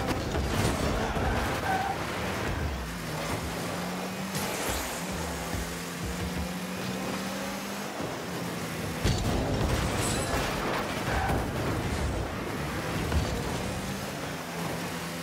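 A racing car engine hums steadily with a rushing roar.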